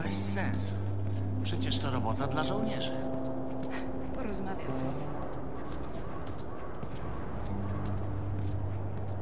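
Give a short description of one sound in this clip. Footsteps walk slowly on pavement.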